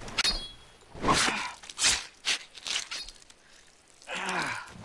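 A knife slices through an animal hide.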